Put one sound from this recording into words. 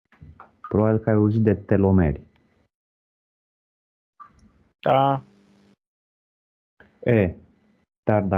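A man speaks in short bursts through an online call.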